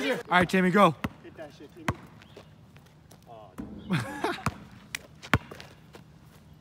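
A basketball bounces on pavement.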